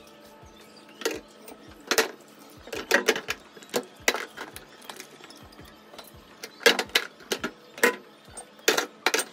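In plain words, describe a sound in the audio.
Plastic bottles knock and clatter as they are placed on a plastic shelf.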